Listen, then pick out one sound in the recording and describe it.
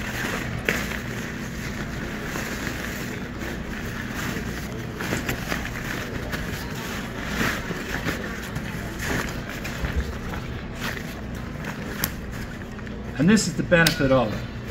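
Nylon fabric rustles and crinkles as a bag is folded and stuffed.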